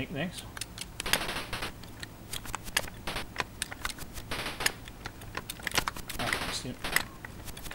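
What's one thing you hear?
Electronic noise bursts hiss from a retro video game like explosions.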